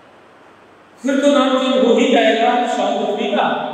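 A man speaks up close in a teaching tone.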